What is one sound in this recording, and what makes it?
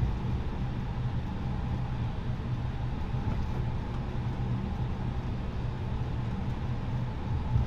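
A jet airliner's engines hum with a low steady rumble as the aircraft rolls along the runway.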